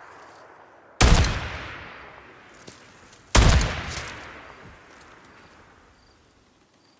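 A rifle fires two loud shots that echo away slowly.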